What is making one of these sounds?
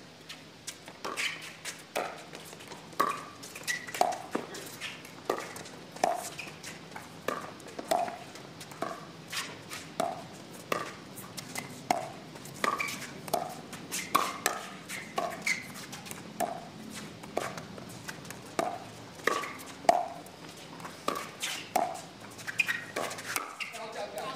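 Paddles strike a plastic ball back and forth in a quick rally.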